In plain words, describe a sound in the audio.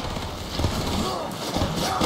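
A staff whooshes through the air.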